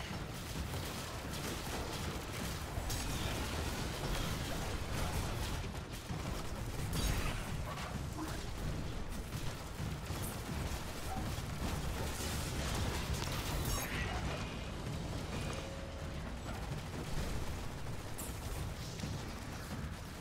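Rapid gunfire crackles and pops.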